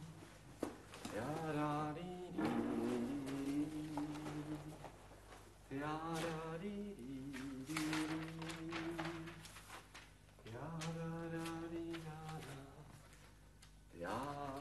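A young man sings in long, melodic phrases.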